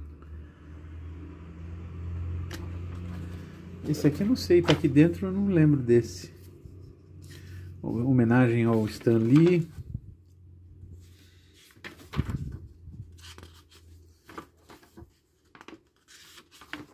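Paper pages rustle and flap as a thin booklet is handled and turned.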